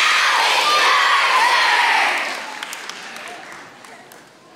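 A large choir of children sings a loud final note that rings out and fades in an echoing hall.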